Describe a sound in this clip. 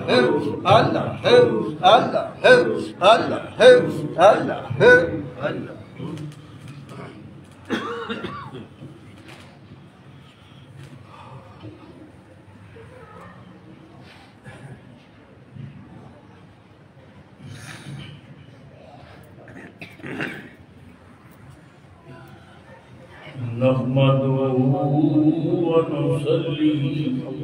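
An elderly man speaks slowly into a microphone, with pauses.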